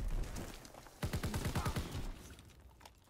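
A submachine gun fires a rapid burst of shots.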